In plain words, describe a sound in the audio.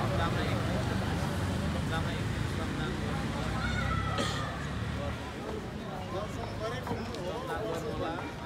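A man speaks to a crowd outdoors, heard close through microphones.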